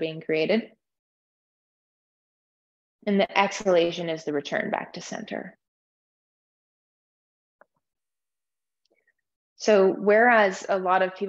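A woman speaks calmly and softly into a close microphone, pausing between phrases.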